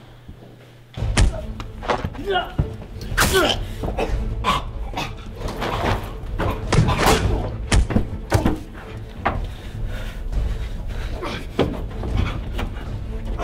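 Men scuffle and grapple with thuds and blows.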